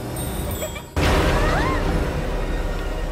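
Heavy doors burst open with a loud whoosh.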